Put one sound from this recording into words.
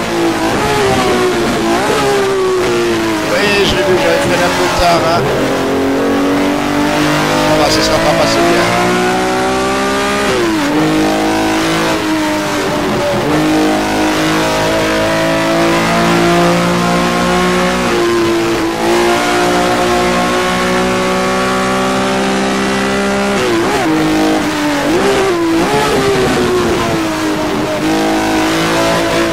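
A race car engine roars loudly, climbing as it revs and dropping sharply on each downshift.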